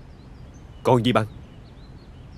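A young man speaks briefly and calmly nearby.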